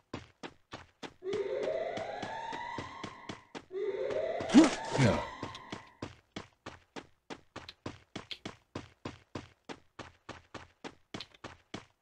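Quick footsteps run steadily over the ground.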